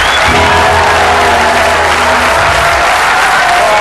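A band plays loud rock music on electric guitars and drums.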